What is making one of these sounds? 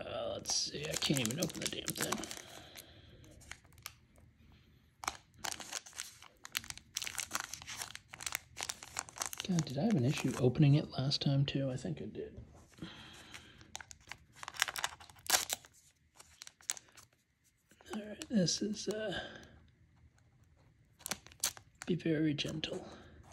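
A foil wrapper crinkles and rustles in hands.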